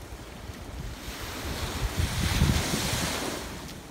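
A wave breaks and washes up the beach with a rushing hiss.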